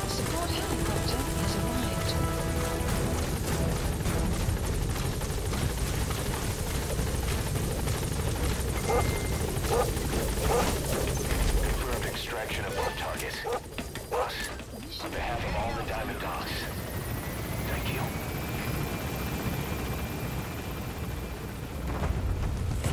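A helicopter's rotor thumps loudly nearby.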